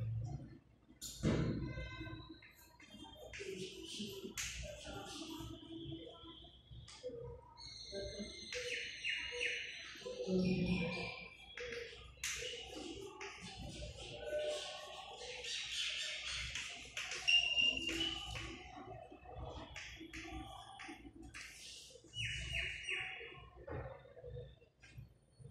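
Chalk taps and squeaks on a blackboard.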